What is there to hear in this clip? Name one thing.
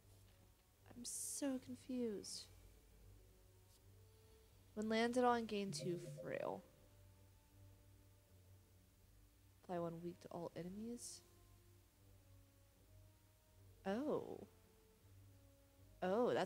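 A young woman talks casually into a close microphone, in short bursts.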